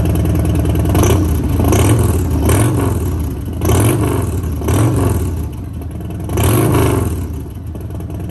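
A motorcycle engine revs up sharply several times and drops back.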